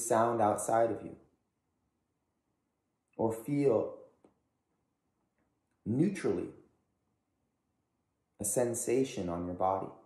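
A man speaks calmly and slowly, close by, with pauses between phrases.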